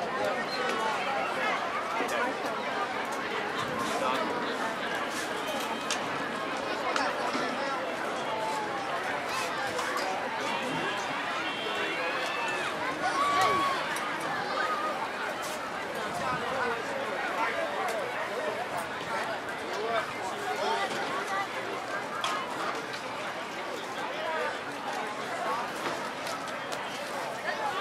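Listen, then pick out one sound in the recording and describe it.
A crowd of children and adults chatters and cheers nearby, outdoors.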